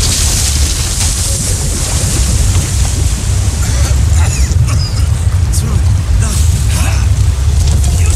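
Sand pours and hisses heavily with a deep rumble.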